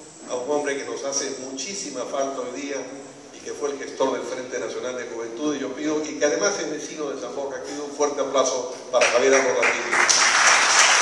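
An elderly man speaks with animation through a microphone and loudspeakers in a large echoing hall.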